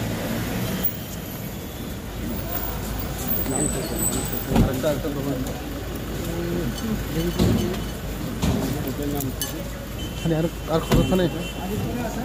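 Several men talk nearby over one another, outdoors.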